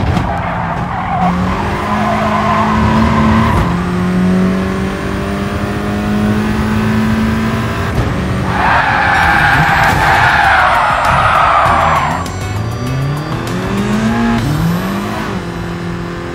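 A racing car engine roars and revs up through gear changes, then winds down.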